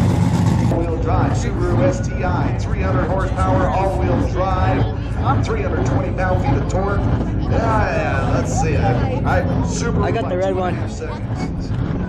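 Spectators nearby chat and call out over one another.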